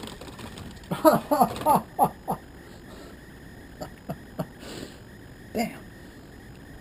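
A plastic basket rattles and knocks as it is handled.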